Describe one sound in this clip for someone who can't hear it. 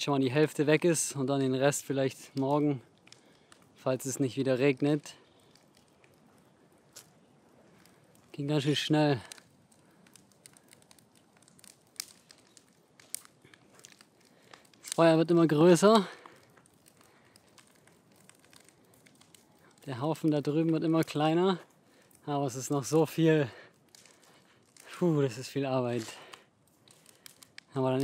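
A smouldering wood fire crackles softly.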